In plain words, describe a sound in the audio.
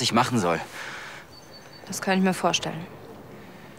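A young woman speaks quietly and tensely close by.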